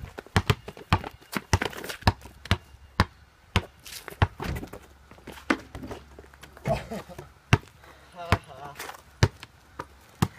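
A basketball bounces repeatedly on pavement outdoors.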